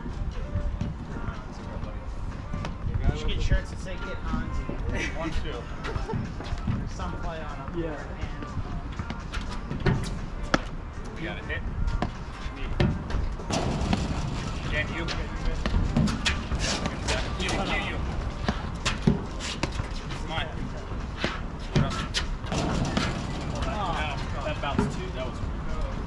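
Players' shoes squeak and scuff on the court.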